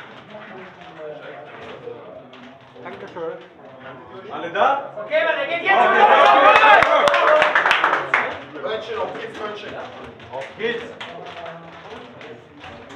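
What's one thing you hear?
Several young men chat and call out in a room with some echo.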